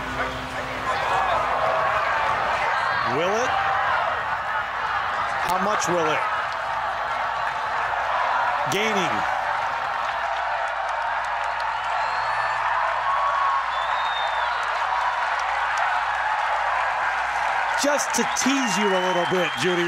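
A crowd of spectators cheers and applauds.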